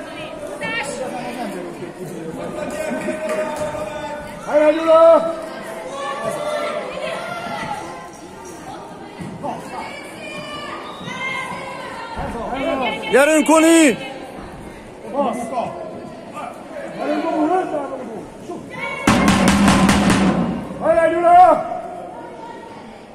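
Children shout and call out to each other in a large echoing hall.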